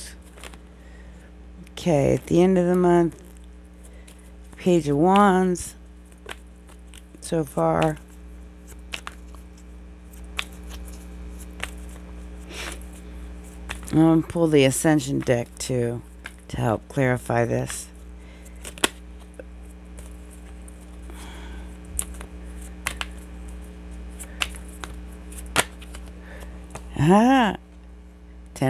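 Playing cards are shuffled and riffled close by, with soft flicks and slaps.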